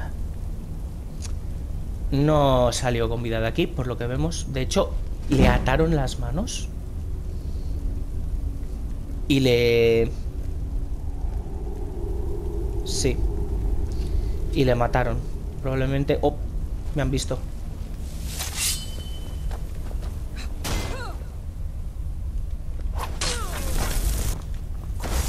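Flames crackle and roar softly.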